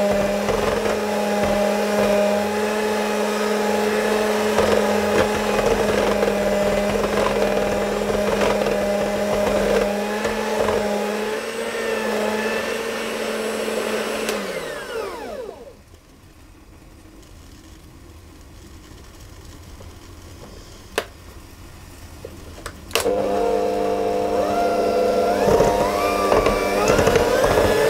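An electric hand mixer whirs steadily, winds down, then starts up again.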